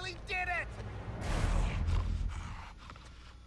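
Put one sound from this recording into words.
A creature growls deeply.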